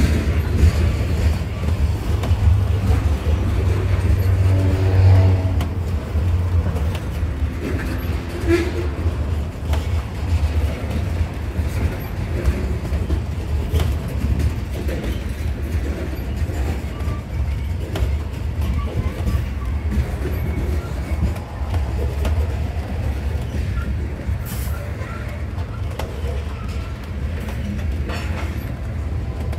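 Steel wheels clack and rattle over rail joints.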